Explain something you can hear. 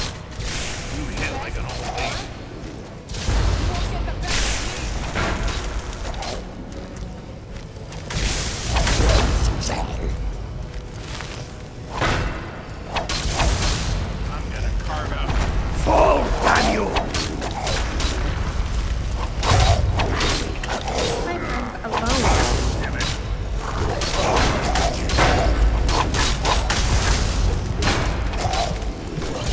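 Metal weapons clang and clash in a fight.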